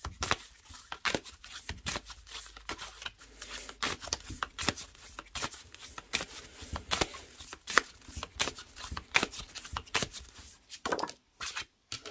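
Playing cards riffle and flap quickly as a deck is shuffled by hand.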